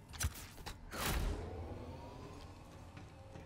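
A machine panel clunks and hums as it powers on.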